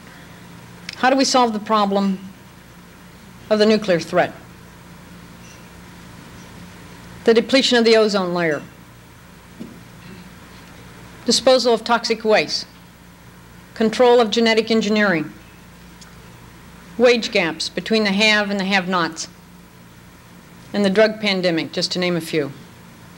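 A woman speaks calmly into a microphone in short phrases with long pauses.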